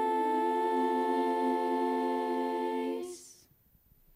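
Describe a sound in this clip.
Young singers hold a sustained chord together into microphones, then stop.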